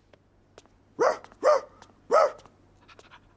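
A small dog barks in short yelps.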